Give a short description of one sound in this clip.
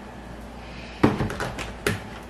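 A plastic jug thuds down on a hard counter.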